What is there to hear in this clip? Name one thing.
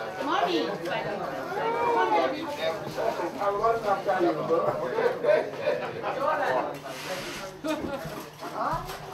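Serving spoons clink against metal trays.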